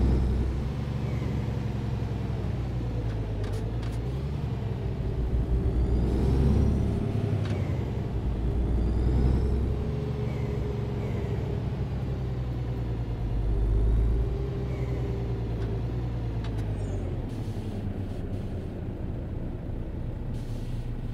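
A truck engine hums steadily, rising and falling as the truck slows and speeds up.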